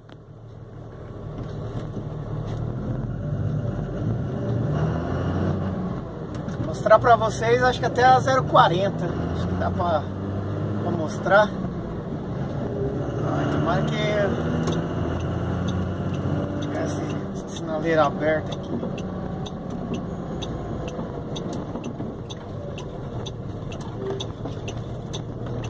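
A car engine hums low and steady while driving along a street.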